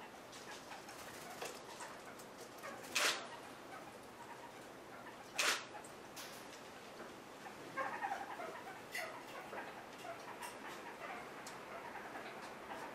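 A parrot pecks and nibbles at food with small clicks.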